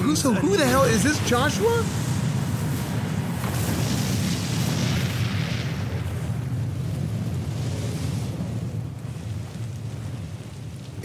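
A huge fire roars with a deep rumble.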